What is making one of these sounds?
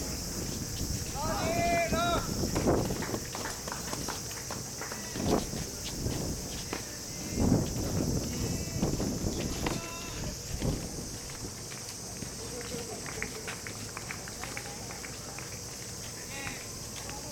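Young men call out in the distance outdoors.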